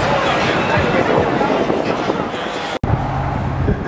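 A bus rolls past with its tyres humming on the road.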